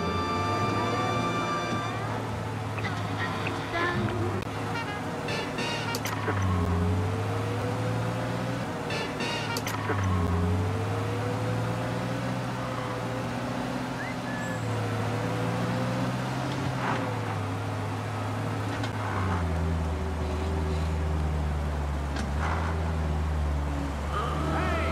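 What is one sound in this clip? Tyres roll over pavement.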